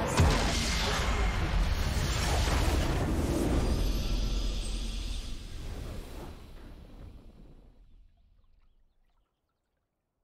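A loud victory fanfare from a game swells and then fades away.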